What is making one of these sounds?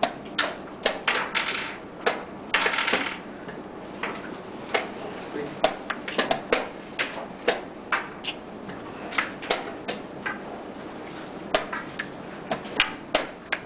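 Wooden chess pieces click and knock sharply on a board.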